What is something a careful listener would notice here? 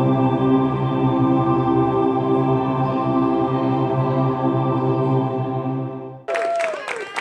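A group of men and women sings a long held chord together.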